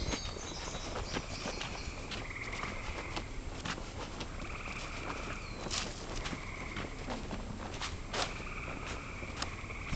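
Wheels rattle and crunch over a bumpy gravel path.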